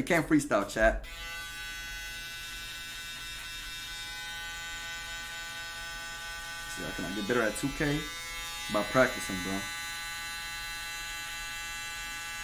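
Electric hair clippers buzz steadily.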